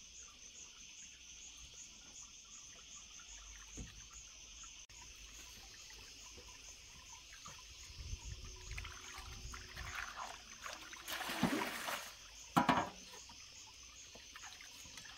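Hands slosh and rub in water in a metal basin.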